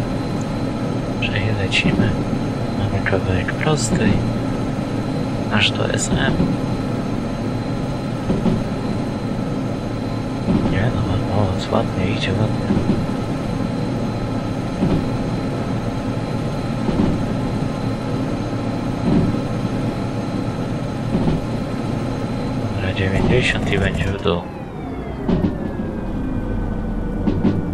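Rain patters on a cab window.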